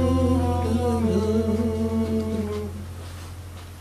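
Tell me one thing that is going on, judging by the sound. An acoustic guitar plays a melody.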